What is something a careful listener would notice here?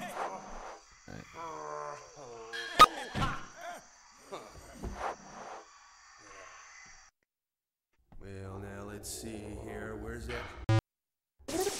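A man talks casually into a microphone, close by.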